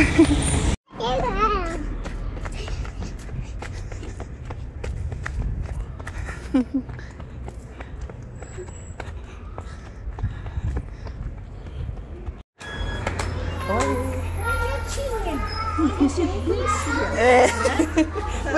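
A young child babbles close by.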